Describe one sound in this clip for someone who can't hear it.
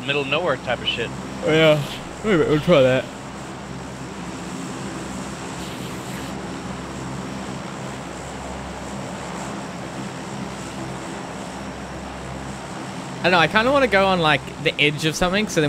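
Propeller engines drone steadily.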